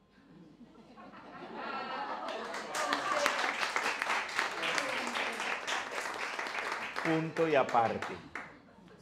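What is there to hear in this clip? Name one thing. An elderly man speaks warmly and with good humour into a microphone.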